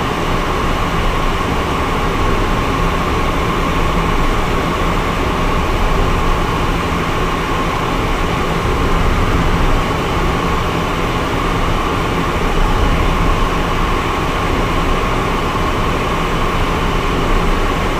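A small plane's engine drones steadily from inside the cockpit.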